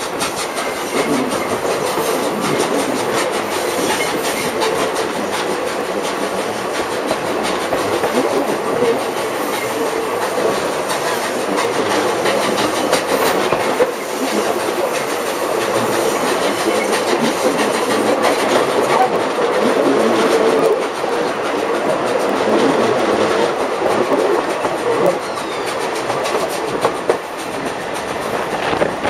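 Wind rushes past loudly outdoors.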